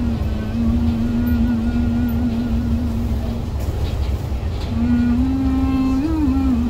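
A bus engine rumbles low and steadily from inside the vehicle.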